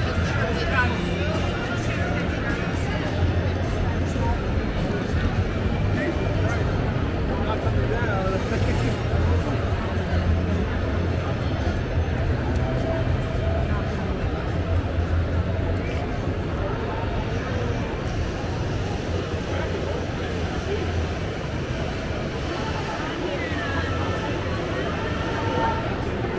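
A crowd of many people chatters all around in a large echoing hall.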